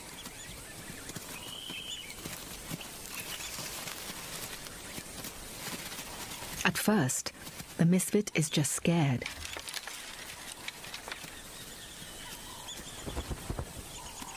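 Small paws patter on dry leaves and dirt.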